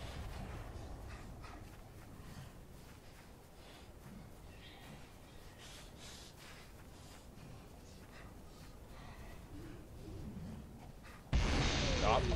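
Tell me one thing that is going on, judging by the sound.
Footsteps fall softly on grass.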